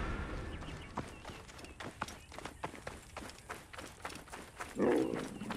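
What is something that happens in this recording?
Footsteps run quickly over sand and dirt.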